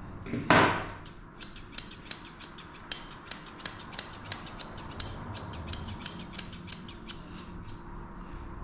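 Scissors snip rapidly and closely at a dog's fur.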